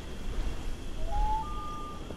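A phone chimes with a short rising tone.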